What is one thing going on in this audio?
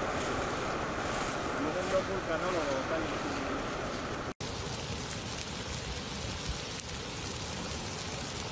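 Molten lava rumbles and crackles as it flows.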